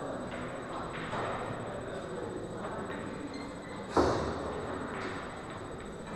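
Pool balls clack against each other.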